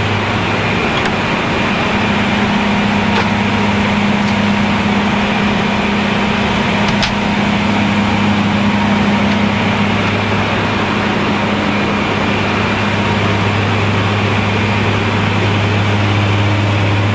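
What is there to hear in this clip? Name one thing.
Aircraft engines and air vents hum and roar steadily.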